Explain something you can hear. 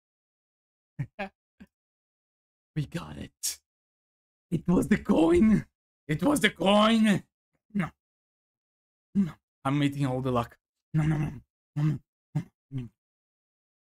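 A young man talks excitedly and laughs close to a microphone.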